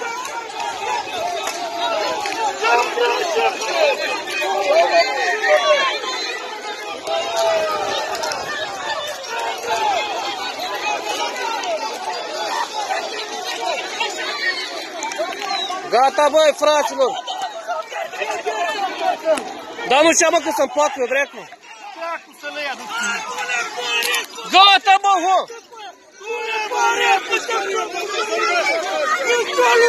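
A crowd of men and women shouts and argues outdoors.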